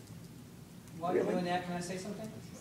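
A middle-aged woman speaks briefly nearby.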